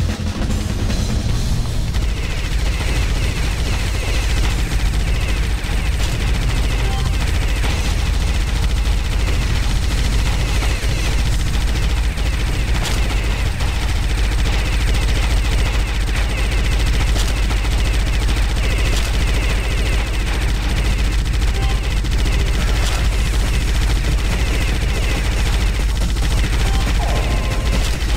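Rapid gunfire rattles without a break.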